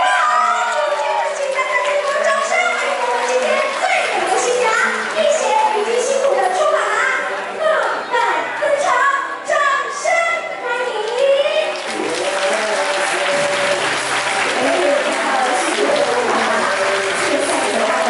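A crowd chatters and cheers loudly.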